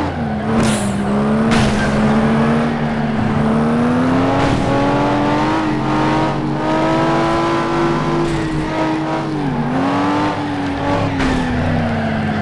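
A racing car engine roars steadily, its pitch rising and falling with the speed.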